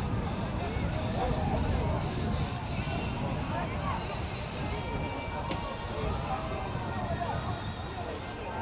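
Children call out faintly in the distance.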